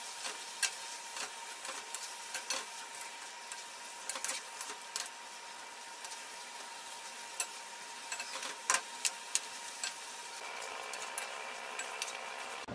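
A wooden spatula scrapes and knocks against a pan as food is stirred.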